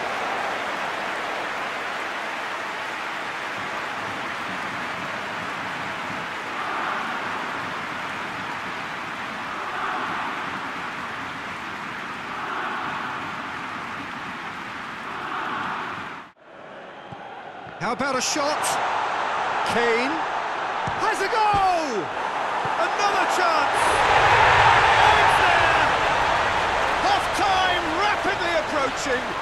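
A large stadium crowd roars steadily, swelling now and then.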